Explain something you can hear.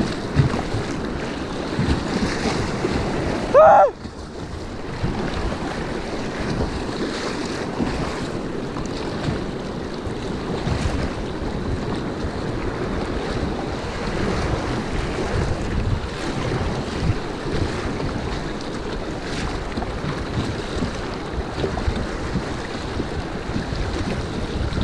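Rapids rush and roar loudly close by, outdoors.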